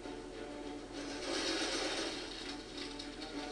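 A laser gun fires with a sharp hissing burst.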